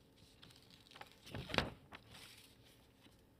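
Sheets of paper rustle briefly.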